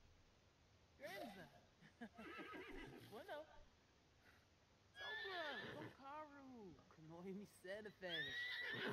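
A young woman chatters playfully and with animation.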